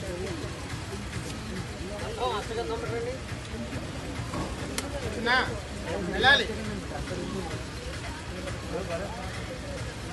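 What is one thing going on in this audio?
A crowd of people chatters and murmurs close by.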